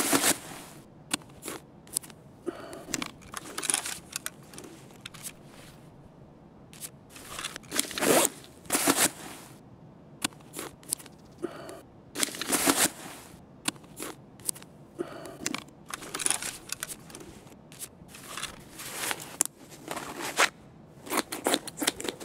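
Plastic items click and snap.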